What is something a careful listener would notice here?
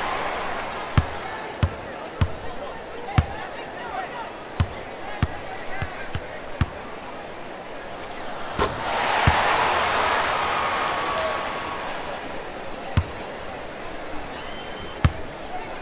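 A basketball bounces repeatedly on a hardwood court.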